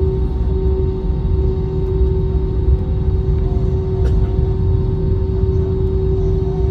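An airliner's cabin rumbles low as it rolls over the ground.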